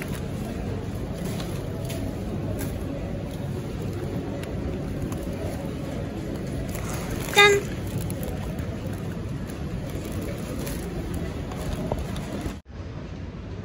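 A plastic shopping bag rustles as packages are handled.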